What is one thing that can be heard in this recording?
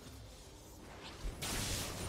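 A magic spell bursts with a bright whooshing crackle.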